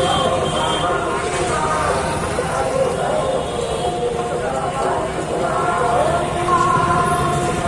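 Vehicle engines rumble steadily nearby.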